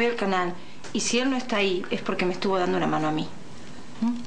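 A young woman speaks quietly and tensely up close.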